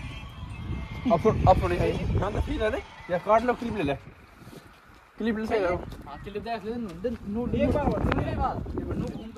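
Young men talk with animation close by, outdoors.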